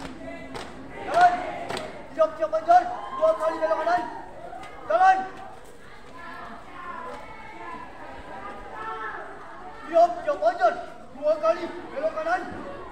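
A group of young women call out loudly in unison.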